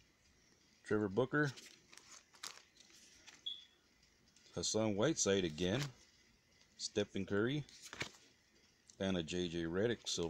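Plastic-wrapped cards rustle and crinkle close by.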